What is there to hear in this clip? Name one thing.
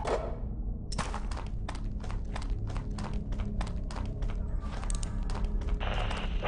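Footsteps tap at an even pace on a hard floor.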